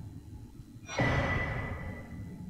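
A soft rushing whoosh sounds as an item is picked up.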